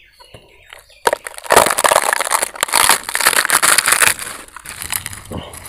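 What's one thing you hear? Crisp fried bread crackles and crunches as fingers break it apart.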